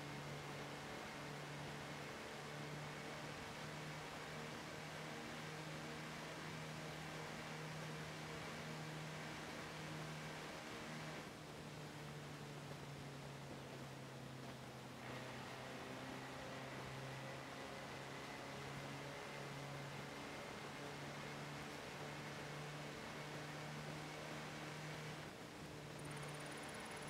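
Tyres hiss over snow.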